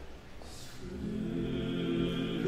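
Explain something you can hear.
A brass ensemble begins to play.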